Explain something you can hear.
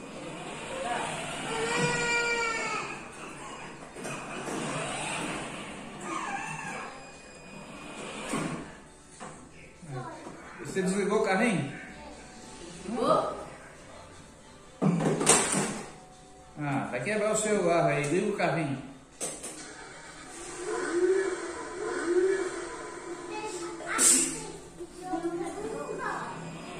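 A small child babbles and shouts in an echoing room.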